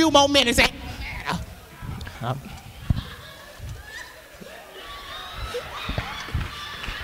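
An elderly man sings into a microphone, heard over loudspeakers in an echoing hall.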